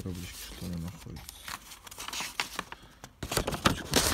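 A hand rustles sheets of paper.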